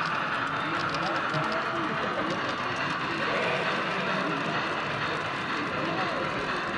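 Voices of people talk in the background of a large echoing hall.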